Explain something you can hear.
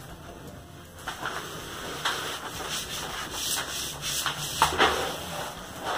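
Hands rustle and smooth out a sheet of crinkly paper.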